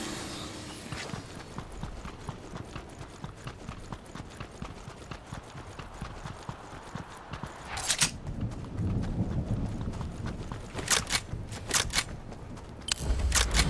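Game footsteps patter quickly across grass.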